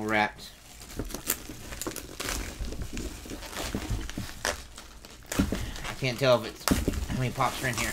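A cardboard box rustles and thumps as it is handled.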